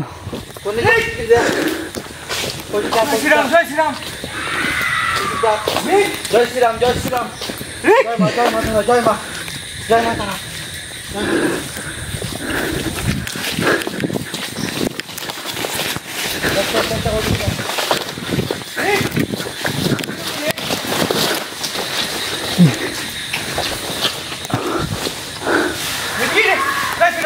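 Footsteps crunch and rustle through dry leaves and undergrowth.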